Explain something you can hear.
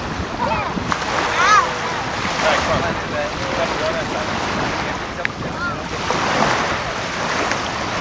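Young children splash through shallow water.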